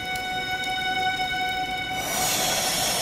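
Game music plays a short tune on an instrument.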